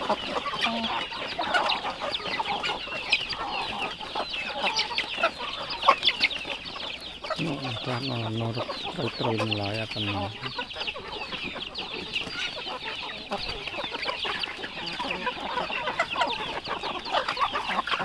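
Chickens peck rapidly at grain on a board.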